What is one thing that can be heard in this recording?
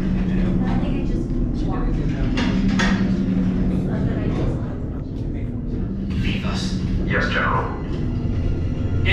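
A crowd of people chatter and murmur nearby.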